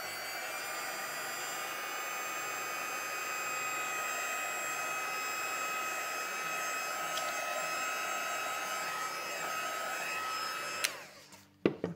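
A heat tool whirs and blows steadily, then stops.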